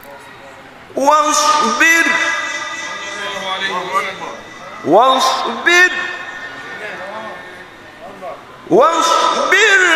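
A man chants in a long, wavering melodic voice through a microphone and loudspeakers, in a reverberant room.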